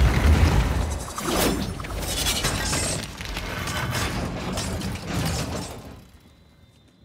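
A helicopter crashes and scrapes across the ground with loud crunching.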